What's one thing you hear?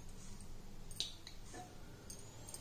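A metal spoon clinks against a glass jar.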